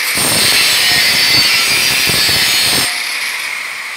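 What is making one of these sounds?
An angle grinder cuts through sheet metal with a loud, harsh whine.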